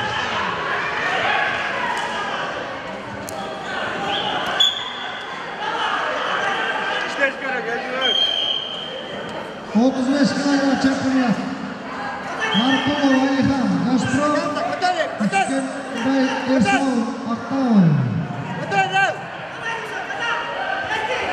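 A crowd of spectators chatters and shouts in an echoing hall.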